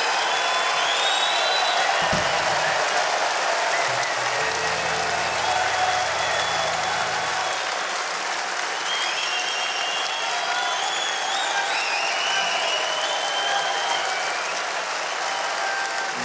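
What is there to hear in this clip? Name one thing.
Fans whistle shrilly.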